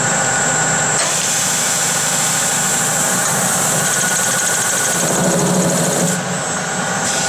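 A cutting tool hisses as it cuts metal.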